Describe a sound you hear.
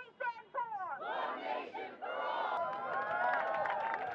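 A crowd cheers and claps.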